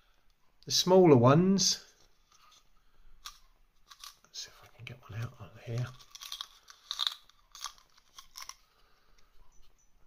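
A plastic wrapper crinkles as hands handle it.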